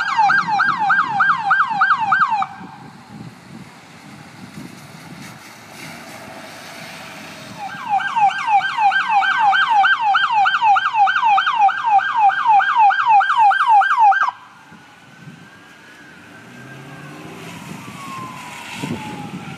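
Tyres hiss on a wet road as cars pass.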